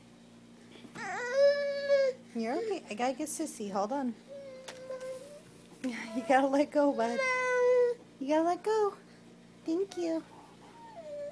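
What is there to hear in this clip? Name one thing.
A toddler squeals and babbles loudly and close by.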